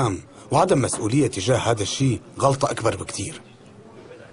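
A middle-aged man speaks firmly and close by, in a deep voice.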